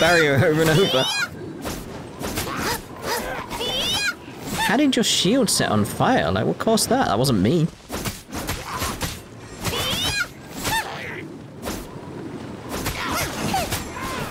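Spear strikes land with sharp, quick impacts.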